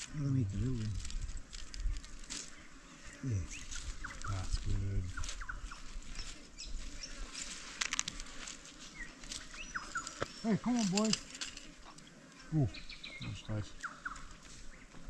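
Men talk calmly nearby outdoors.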